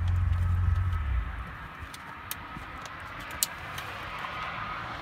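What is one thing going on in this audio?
Plastic parts click and clack as a man handles them.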